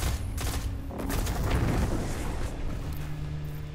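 A loud energy blast roars and crackles.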